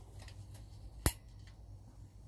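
A switch clicks as a monitor powers on.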